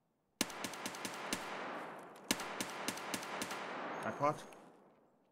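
A rifle fires rapid bursts that echo in a large hall.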